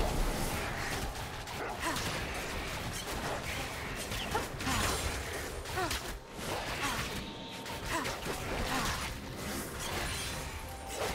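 Game weapons clash and hit repeatedly.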